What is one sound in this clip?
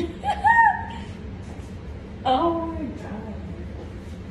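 A young woman squeals and laughs playfully close by.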